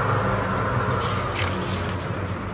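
A sheet of paper rustles as a hand slides it.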